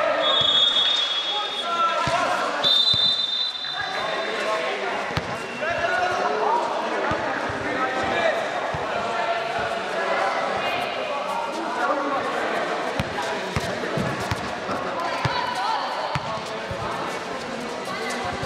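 A basketball bounces on a hard court with sharp thuds.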